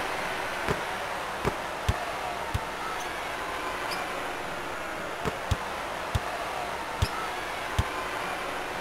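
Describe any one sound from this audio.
A basketball bounces on a hardwood court in a steady dribble.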